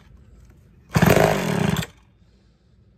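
A chainsaw's starter cord is pulled with a short rasping whirr.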